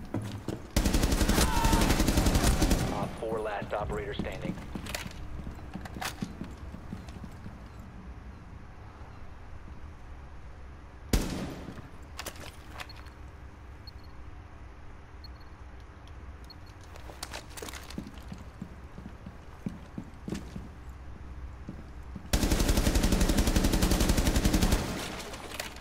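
A rifle fires rapid automatic bursts at close range.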